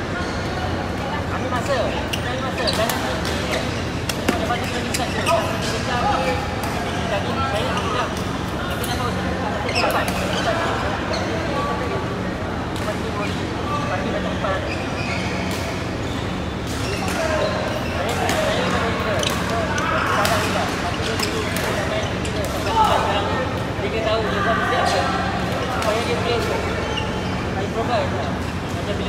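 Men call out and chatter through the hall.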